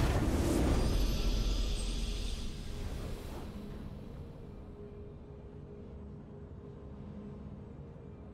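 A triumphant victory fanfare swells and slowly fades.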